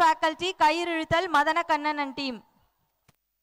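A woman sings through a loudspeaker outdoors.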